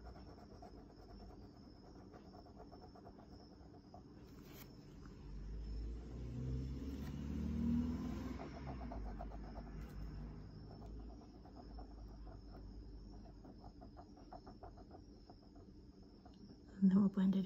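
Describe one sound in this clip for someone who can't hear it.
A fine-tipped pen scratches softly across paper.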